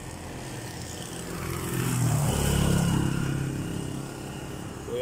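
A motor tricycle drives past close by.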